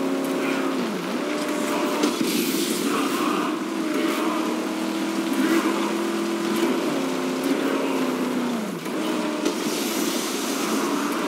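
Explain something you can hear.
A car engine roars steadily, its pitch rising and falling with gear shifts.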